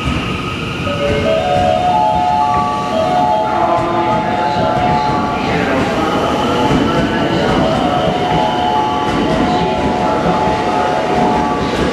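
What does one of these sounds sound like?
Train brakes squeal with a steady high whine.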